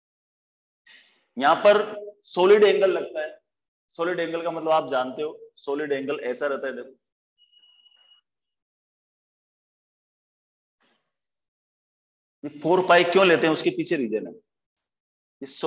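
A middle-aged man speaks calmly and clearly nearby, explaining in pauses.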